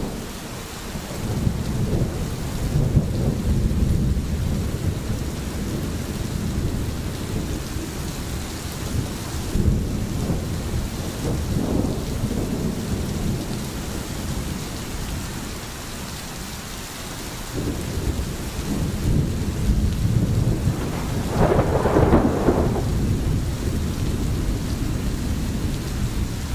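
A stream gurgles steadily over stones.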